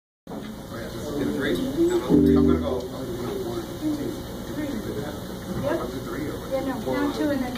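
A drum kit plays a steady beat.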